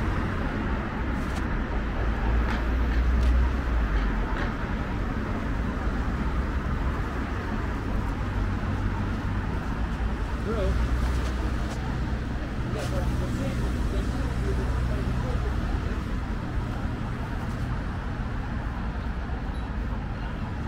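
Footsteps tap on a pavement.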